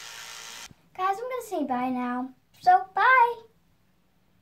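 A young girl talks close by.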